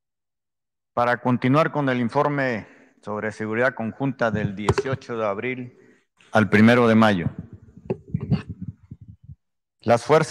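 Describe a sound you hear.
A man speaks calmly into a microphone, heard through a loudspeaker in a large hall.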